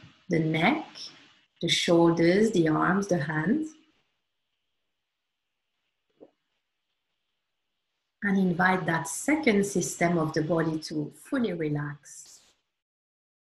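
A woman speaks calmly and softly into a close microphone.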